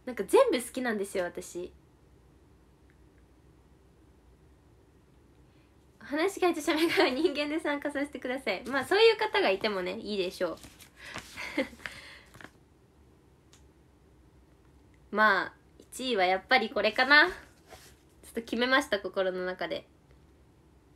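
A young woman talks cheerfully and close by, with pauses.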